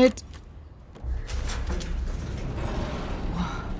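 A heavy metal door grinds and rumbles open.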